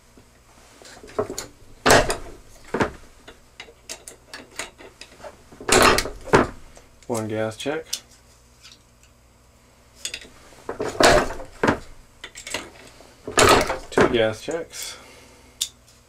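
A hand press thumps and grinds as its lever is pulled down.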